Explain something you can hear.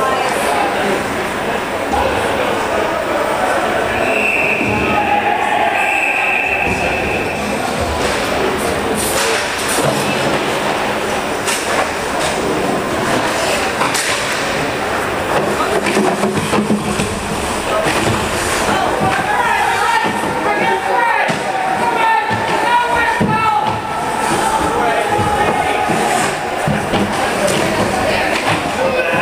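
Ice skates scrape and swish across the ice.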